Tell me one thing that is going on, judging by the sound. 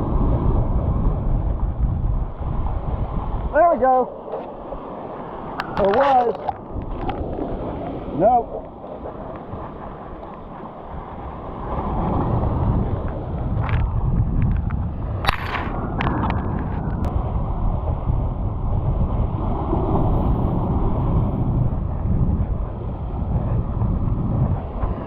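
Waves crash and wash over rocks nearby.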